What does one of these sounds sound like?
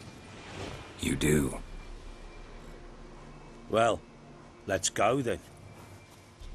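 Men talk back and forth in short lines.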